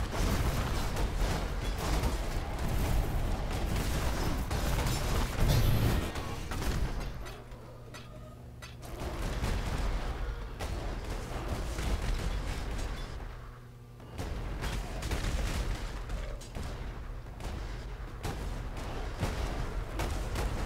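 Fiery magic blasts crackle and boom rapidly.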